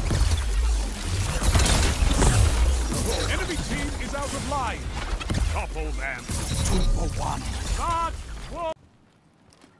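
A staff weapon fires crackling energy blasts.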